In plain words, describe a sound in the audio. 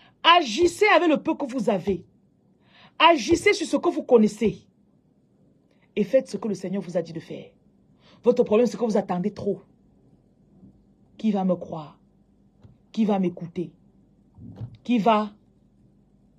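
A woman speaks close to a phone microphone in short, emphatic bursts with pauses between them.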